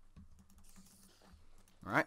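A sword strikes a creature with soft thuds.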